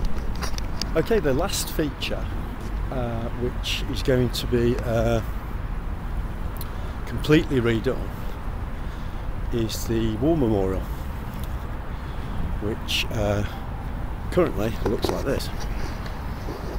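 A middle-aged man talks calmly close to the microphone, outdoors.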